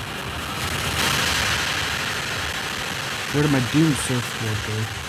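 Water rushes down a waterfall.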